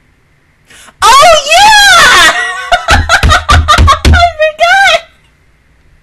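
A young woman laughs loudly and shrieks close to a microphone.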